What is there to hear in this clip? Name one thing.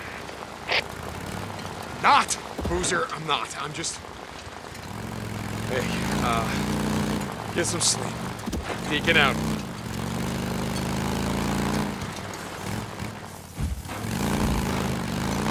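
A motorcycle engine rumbles and revs.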